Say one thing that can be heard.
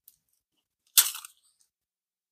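Paper crinkles briefly close by.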